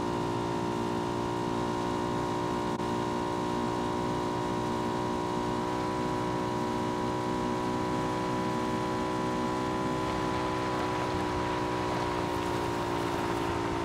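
A motorbike engine drones steadily at speed.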